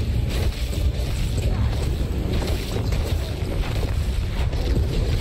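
Spell blasts and weapon strikes crash repeatedly in a game battle.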